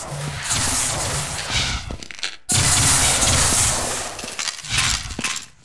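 Footsteps thud steadily.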